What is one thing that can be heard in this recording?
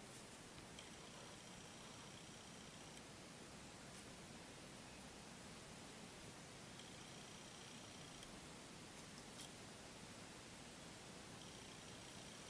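Dry leaves rustle softly as a deer noses and steps through them.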